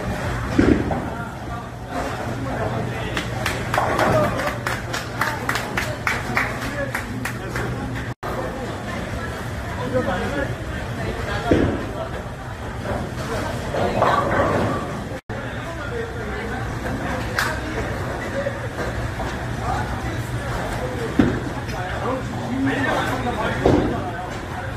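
Bowling pins crash and clatter in an echoing hall.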